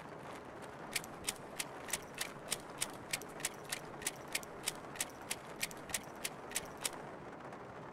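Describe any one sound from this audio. Menu clicks tick softly at an even pace.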